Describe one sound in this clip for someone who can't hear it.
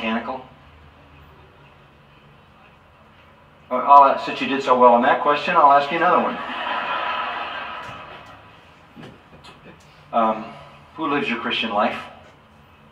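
An elderly man speaks slowly and deliberately through a loudspeaker, in pauses.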